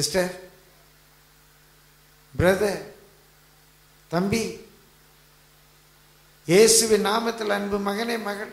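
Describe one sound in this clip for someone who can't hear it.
An elderly man speaks into a microphone in short bursts, heard through a loudspeaker.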